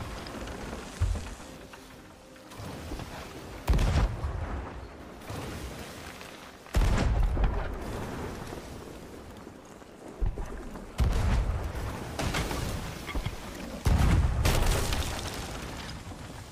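Cannons boom loudly several times.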